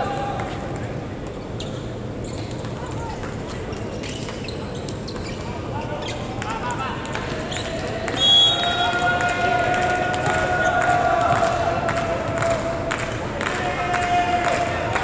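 Volleyballs are struck and bounce with sharp smacks in a large echoing hall.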